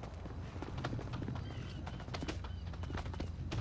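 A helicopter's rotor thumps and whirs.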